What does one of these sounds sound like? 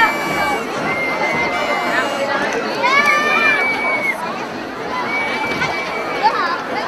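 A large crowd of marchers chatters and calls out outdoors.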